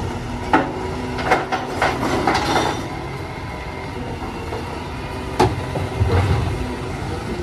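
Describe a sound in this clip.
A garbage truck's arm lifts a bin and tips it with mechanical clanks.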